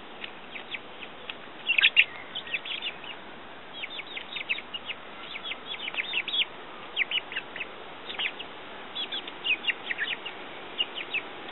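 Hens peck rapidly at grain in a hand, with sharp little taps.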